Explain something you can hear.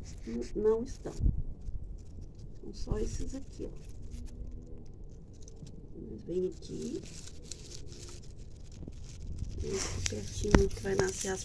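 Leaves rustle softly as hands brush through plants.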